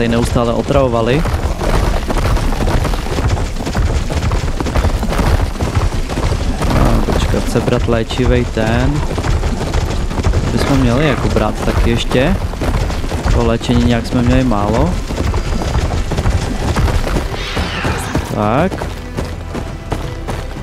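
Metal hooves thud steadily on rocky ground.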